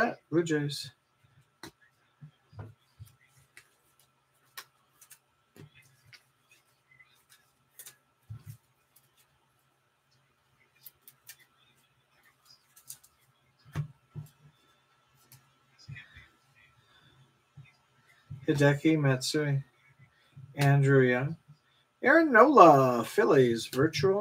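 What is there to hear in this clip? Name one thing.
Trading cards rustle and flick softly between fingers.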